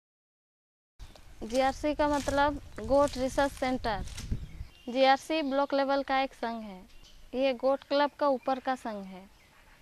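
A woman speaks calmly, close to a microphone.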